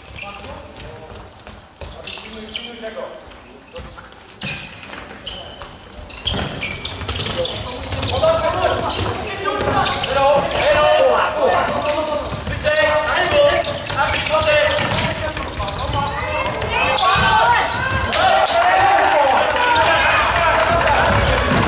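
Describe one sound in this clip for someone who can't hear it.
A ball is kicked with sharp thuds that echo around a large hall.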